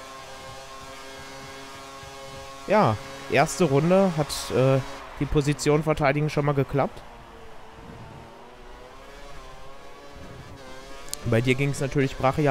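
A racing car engine whines at high revs and shifts pitch through the gears.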